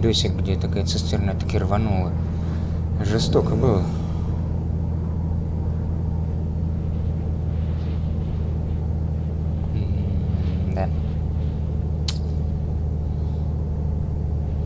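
A truck engine drones steadily at cruising speed.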